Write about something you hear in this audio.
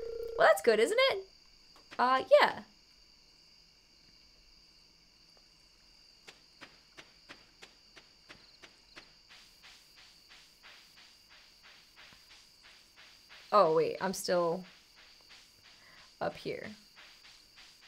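A young woman speaks into a microphone in short bursts.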